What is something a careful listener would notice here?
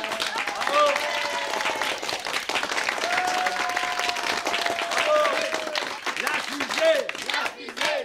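A group of people cheers and claps loudly.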